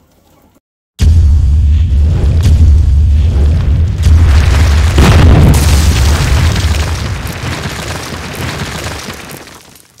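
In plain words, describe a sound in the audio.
A stone wall cracks and crumbles with a deep, heavy rumble.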